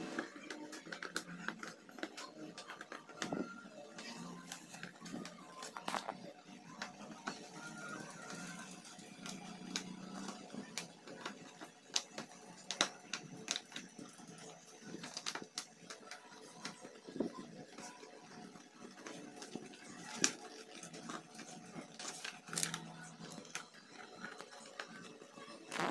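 Plastic parts click and scrape as hands fit them together.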